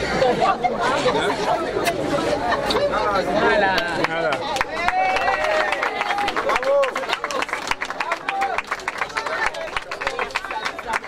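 A crowd of men and women talks and cheers excitedly close by.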